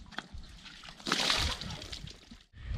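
Water splashes as a bucket is poured into a trough.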